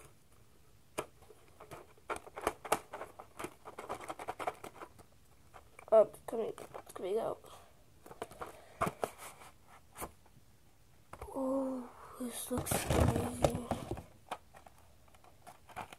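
A plastic box rattles and clicks in a boy's hands.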